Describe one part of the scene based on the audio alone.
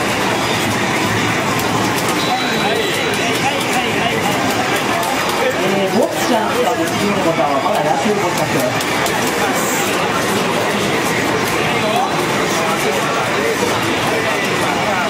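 Video game music plays from an arcade cabinet's loudspeakers.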